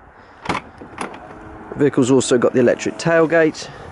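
A car's tailgate opens with a soft whir.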